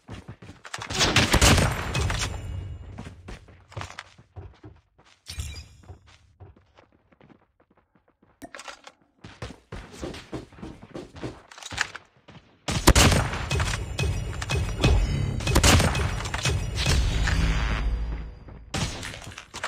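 A sniper rifle fires loud single shots that boom and echo.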